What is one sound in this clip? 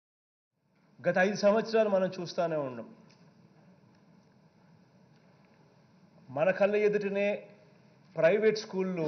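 A man speaks forcefully into a microphone in a large hall, pausing between phrases.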